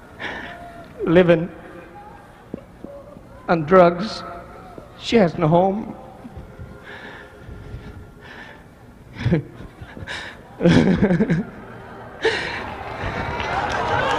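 A man speaks forcefully through a microphone in a large echoing hall.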